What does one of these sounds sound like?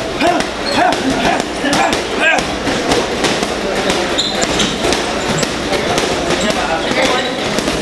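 Boxing gloves thump against a heavy punching bag.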